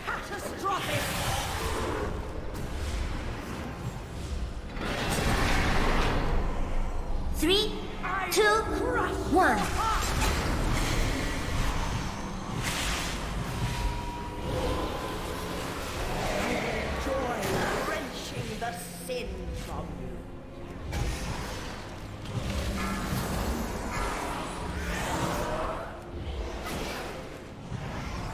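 Spell effects whoosh, crackle and clash in a busy fight.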